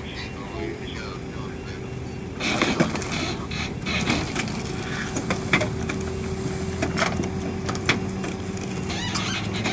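A tow truck winch hums steadily as it pulls a car up a ramp.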